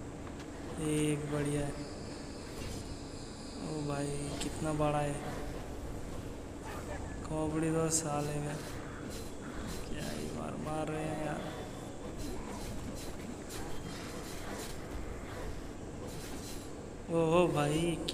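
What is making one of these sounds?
Swords slash and strike in a fast fight.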